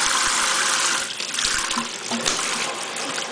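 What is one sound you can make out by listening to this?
A parrot flaps its wings, splashing water.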